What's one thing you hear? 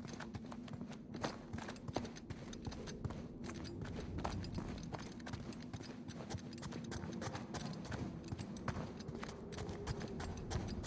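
Footsteps thud quickly on stone, echoing in a large stone space.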